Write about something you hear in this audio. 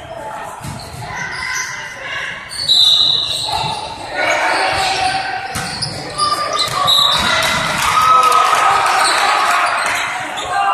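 Young men call out to each other in an echoing gym.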